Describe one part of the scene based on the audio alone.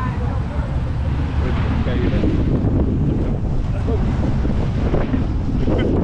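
A man speaks close to a microphone over the wind.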